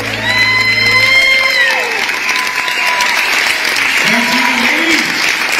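Acoustic guitars and ukuleles strum a lively tune on an amplified stage.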